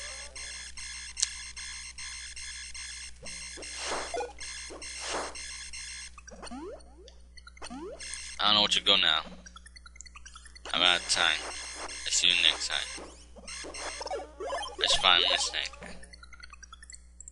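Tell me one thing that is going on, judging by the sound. Retro video game sound effects zap and beep.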